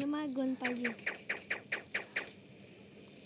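Gunshots fire in a quick series.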